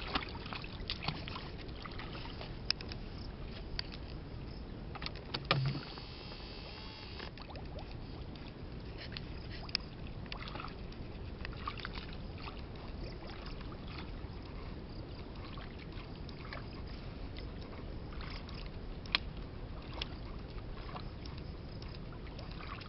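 Muddy water splashes as a boy wades and scoops with his hands.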